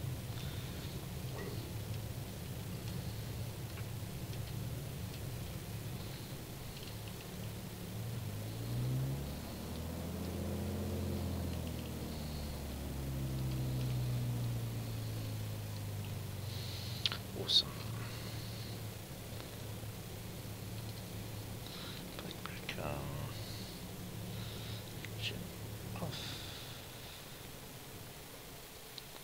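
A small propeller engine idles with a low, steady drone that swells briefly.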